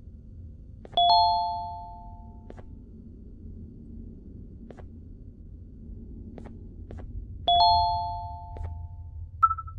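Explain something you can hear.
A two-note electronic tone sounds and fades.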